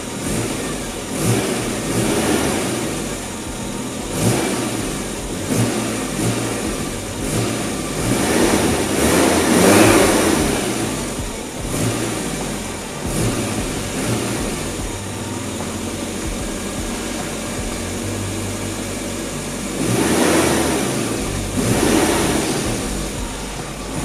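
A small car engine revs up and settles back down a few times.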